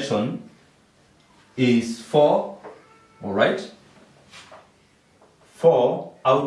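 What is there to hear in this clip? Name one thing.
A young man speaks calmly and clearly, close by, with pauses between phrases.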